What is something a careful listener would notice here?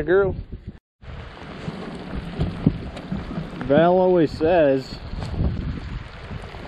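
Rain patters steadily on open water.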